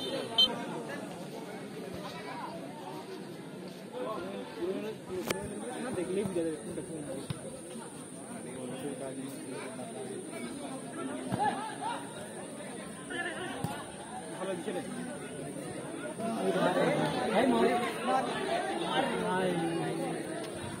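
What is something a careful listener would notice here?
A large outdoor crowd chatters and shouts, growing louder toward the end.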